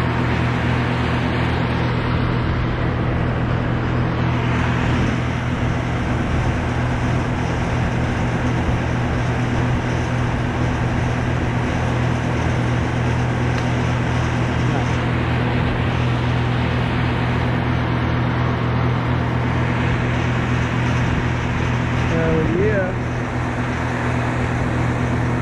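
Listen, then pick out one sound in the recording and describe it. A chainsaw engine idles close by with a steady hum.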